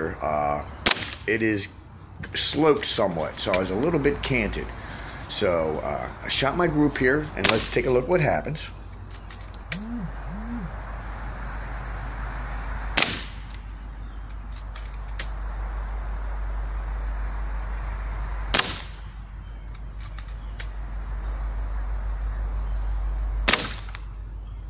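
Gunshots crack sharply outdoors, one at a time, with a short echo.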